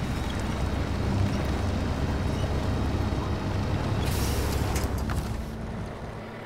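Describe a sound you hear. A truck engine rumbles low and steady, then quietens.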